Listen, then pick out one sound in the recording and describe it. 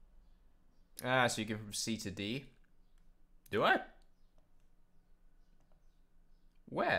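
A young man speaks with animation close to a microphone.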